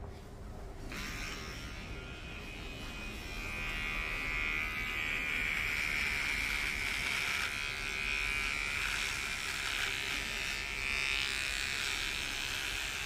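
Electric clippers buzz steadily close by.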